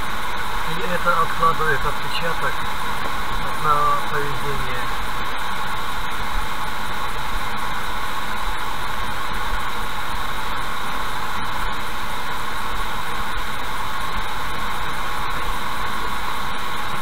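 A car drives steadily along a wet road with a low, even rumble.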